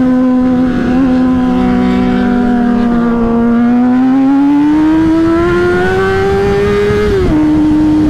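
A motorcycle engine hums close by, its pitch rising as it speeds up, then dropping sharply on a gear change.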